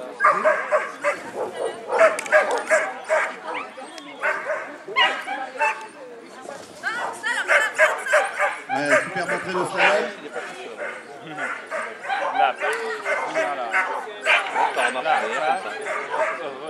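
A dog barks rapidly and excitedly outdoors.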